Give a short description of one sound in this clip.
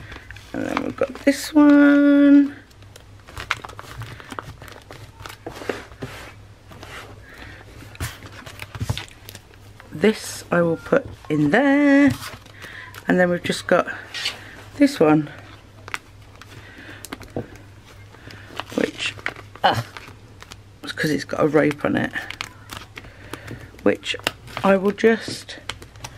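Hands rustle and rub against a soft fabric pouch.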